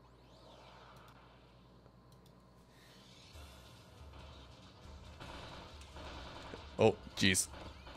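Video game battle effects burst and clash.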